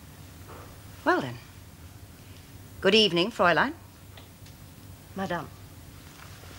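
A woman speaks quietly and with feeling, close by.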